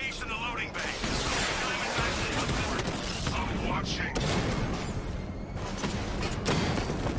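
Cannons and guns fire in rapid bursts.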